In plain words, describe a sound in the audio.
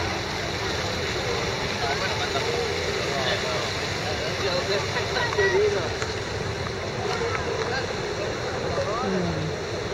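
People chatter at a distance outdoors.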